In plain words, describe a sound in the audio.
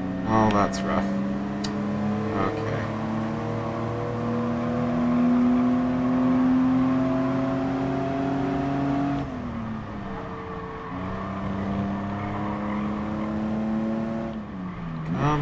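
A racing car engine revs high, shifting gears up and down.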